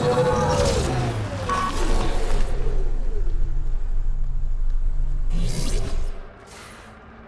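A vehicle engine rumbles loudly and then cuts out.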